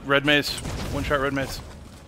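Gunfire bursts out rapidly.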